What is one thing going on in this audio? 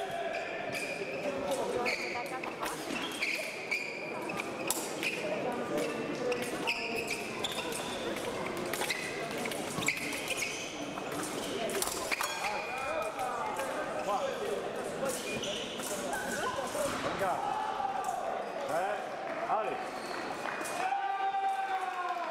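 Fencers' shoes thump and squeak on a hard floor.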